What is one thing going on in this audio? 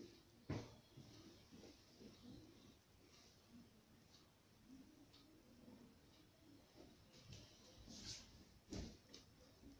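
Fabric rustles and brushes close by.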